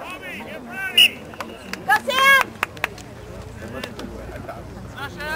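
Lacrosse sticks clack together as players scramble for the ball.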